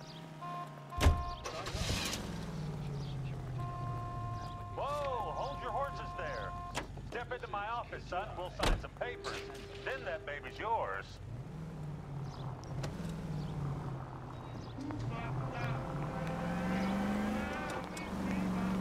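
A car engine starts and revs as the car drives off.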